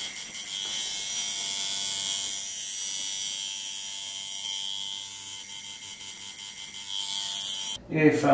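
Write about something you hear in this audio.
A tattoo machine buzzes steadily.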